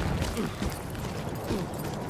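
Flames crackle and hiss nearby.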